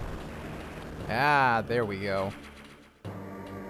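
A short bright electronic jingle sounds.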